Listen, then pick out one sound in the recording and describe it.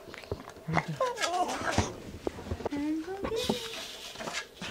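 A dog whines in high, wavering tones.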